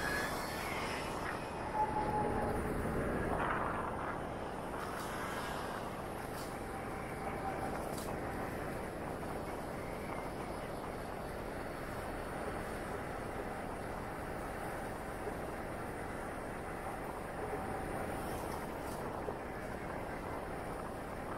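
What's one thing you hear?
A scooter engine hums steadily while riding.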